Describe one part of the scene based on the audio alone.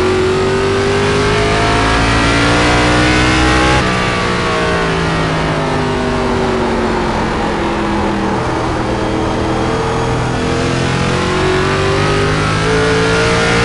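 A race car engine roars, rising as it speeds up and dropping as it slows for a corner.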